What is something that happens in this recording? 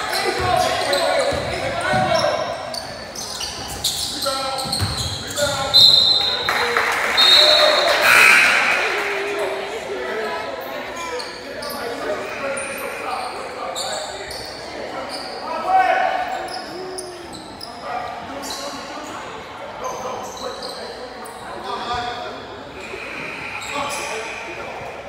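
Young players shout to each other across an echoing gym.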